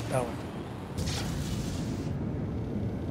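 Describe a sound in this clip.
A spaceship boost bursts with a loud whoosh.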